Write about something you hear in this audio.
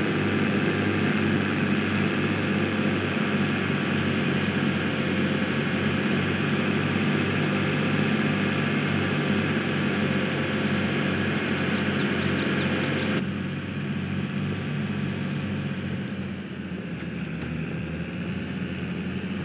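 A heavy farm machine's diesel engine drones steadily, then sounds more muffled.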